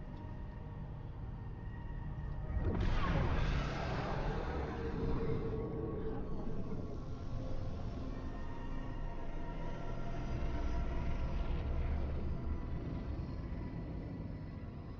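A deep engine rumble drones steadily.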